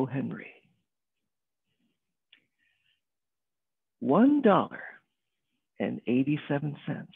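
A middle-aged man speaks with animation through an online call, with pauses.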